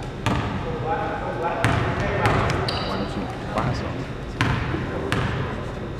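A basketball bounces on a court.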